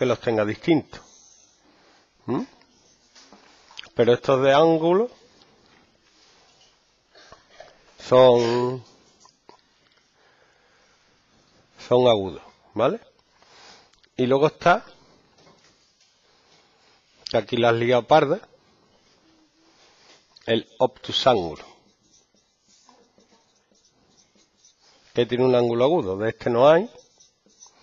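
A man speaks calmly in short phrases with pauses, close by.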